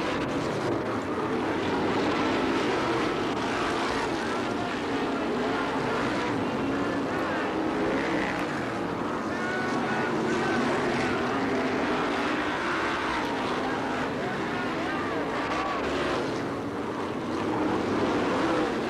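Racing car engines roar loudly.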